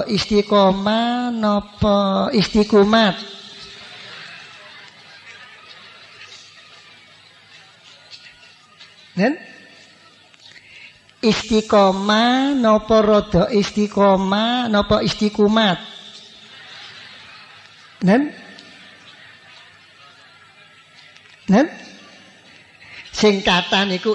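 An elderly man chants a prayer through a microphone, pausing between phrases.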